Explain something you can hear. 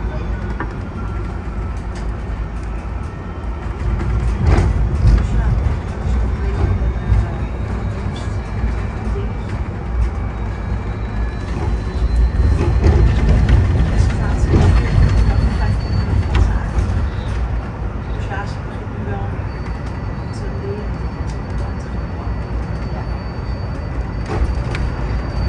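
A bus engine hums and rumbles steadily from inside the cabin.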